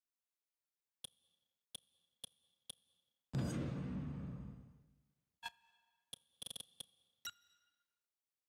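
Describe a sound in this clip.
Short electronic menu clicks tick several times.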